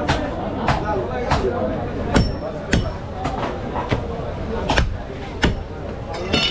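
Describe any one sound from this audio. A cleaver chops sharply into a wooden block.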